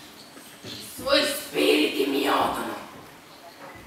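A young woman speaks tensely and in bursts, close by.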